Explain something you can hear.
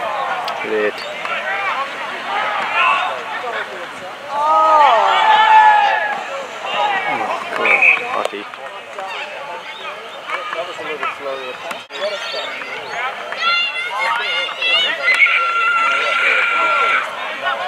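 Men shout and call out outdoors across an open field.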